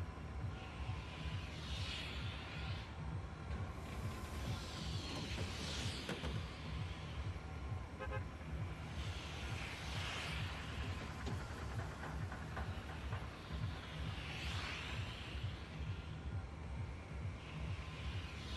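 A low engine hum drones steadily.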